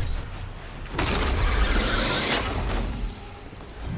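A pickaxe swings through the air with a whoosh.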